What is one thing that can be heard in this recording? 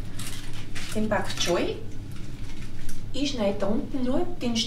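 A woman speaks calmly at close range.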